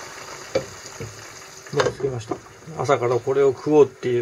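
A metal lid clinks down onto a pan.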